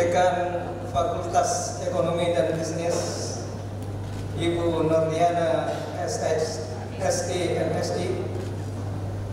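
A middle-aged man speaks calmly into a microphone, heard through loudspeakers in a large echoing hall.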